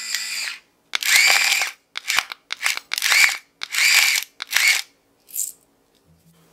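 An electric grinder buzzes in short bursts as it grinds salt.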